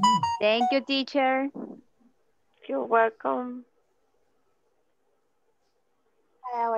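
A young girl speaks through an online call.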